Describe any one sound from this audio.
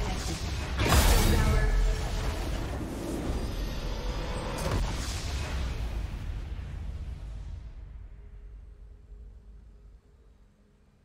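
A triumphant victory fanfare swells and then fades away.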